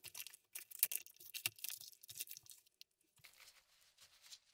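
Paper towel rustles and crinkles in gloved hands.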